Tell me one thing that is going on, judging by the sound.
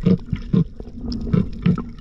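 Air bubbles gurgle and burble underwater.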